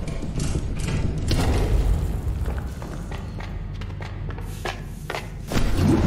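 Footsteps patter on a wooden floor.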